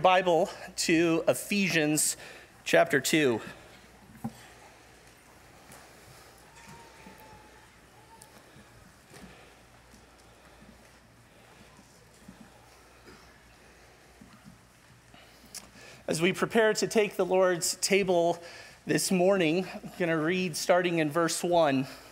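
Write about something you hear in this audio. A man speaks calmly into a headset microphone, heard over a loudspeaker in a large room.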